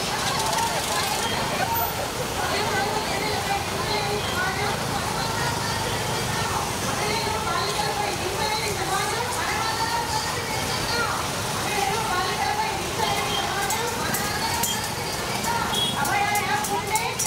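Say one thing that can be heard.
Scooter engines hum as a slow procession rides past.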